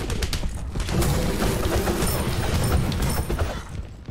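Game sword strikes and spell blasts crash and burst.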